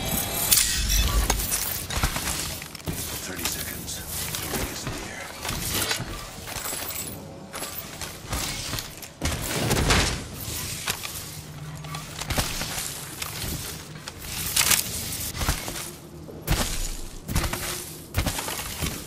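Quick footsteps patter across hard ground and metal.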